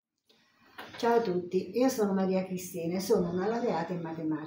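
An elderly woman speaks calmly and warmly, close to a microphone.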